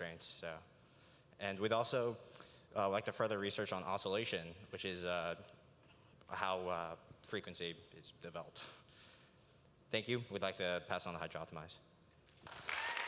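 A young man speaks calmly into a microphone over loudspeakers in a large hall.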